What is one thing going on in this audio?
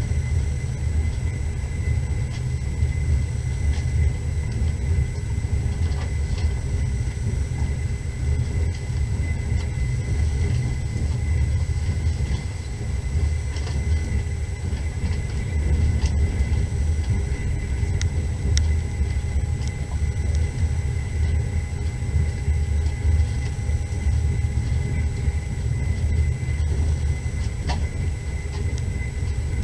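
Tyres rumble over packed snow.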